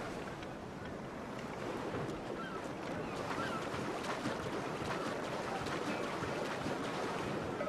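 Water splashes as a swimmer strokes steadily.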